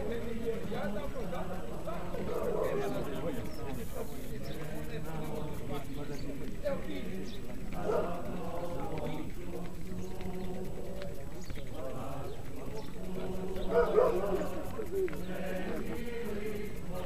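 A group of adults talk among themselves outdoors while walking.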